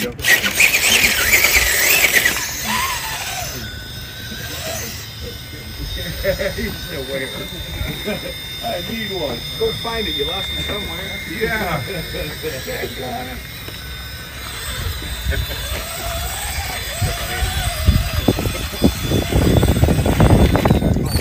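A small electric motor whines steadily as a toy car crawls along.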